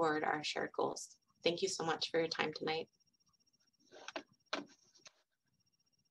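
A woman speaks calmly through a microphone over an online call.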